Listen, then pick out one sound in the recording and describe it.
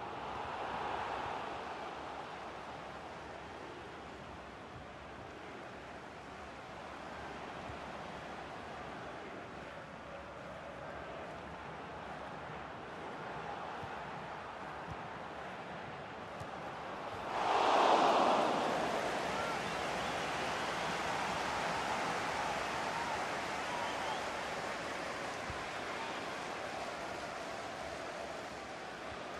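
A large stadium crowd murmurs steadily, then swells into a loud roar.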